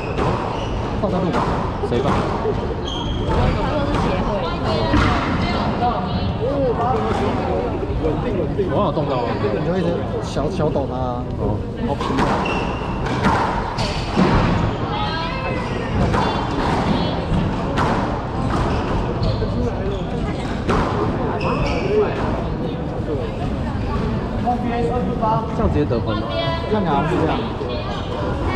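A squash ball smacks sharply and echoes off the walls.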